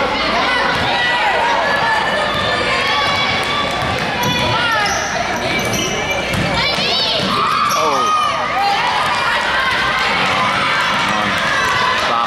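A crowd murmurs and chatters in the stands.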